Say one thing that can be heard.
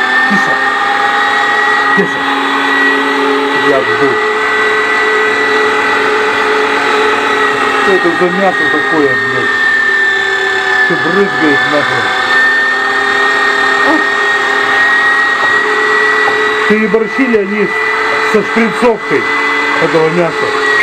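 An electric meat grinder whirs steadily close by.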